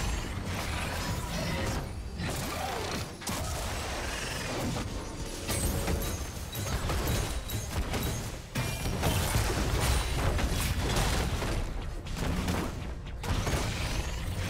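Game combat effects clash and crackle with magical blasts and hits.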